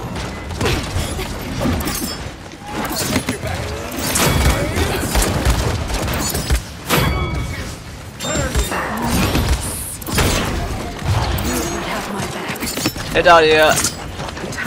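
Game weapons fire in rapid bursts with loud blasts.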